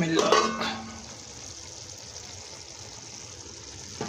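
A metal lid clinks against a steel pot.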